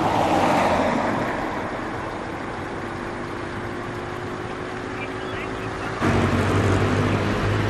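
Traffic rumbles past on a road outdoors.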